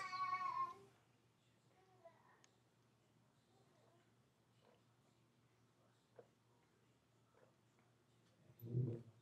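A young woman quietly sips a drink through a straw.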